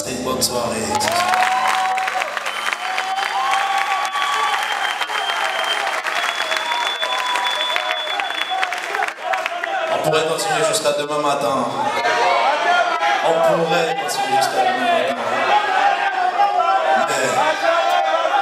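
A man sings into a microphone over the band.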